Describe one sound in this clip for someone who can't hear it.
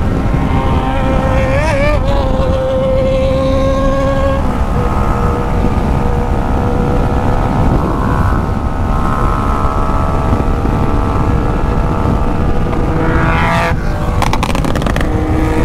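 A motorcycle engine revs up and down as the rider shifts gears.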